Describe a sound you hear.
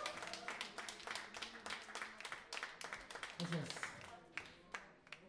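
A band plays fast, with drums and keyboard.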